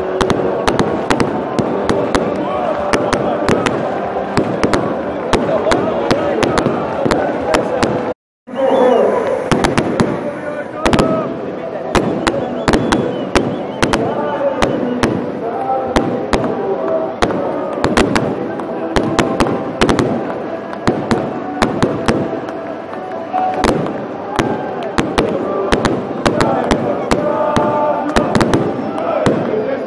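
Fireworks and flares pop and crackle sharply.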